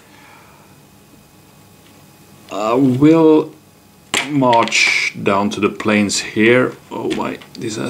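Wooden game blocks clack softly as a hand moves them on a board.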